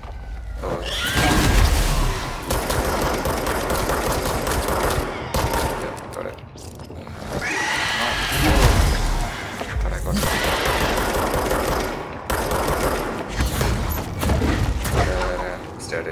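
Loud explosions boom and rumble.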